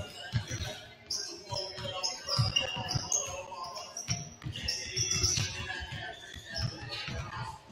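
Basketballs bounce repeatedly on a hardwood floor in a large echoing gym.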